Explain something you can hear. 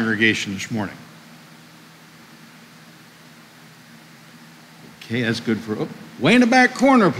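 A middle-aged man preaches with animation into a microphone in an echoing room.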